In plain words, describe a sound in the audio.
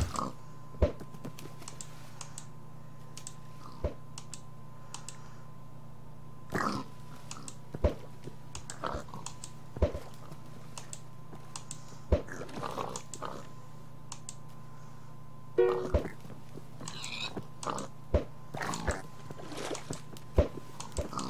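Pigs grunt and squeal.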